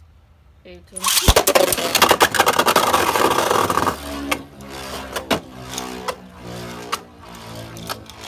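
A spinning top whirs and rattles loudly against a plastic arena.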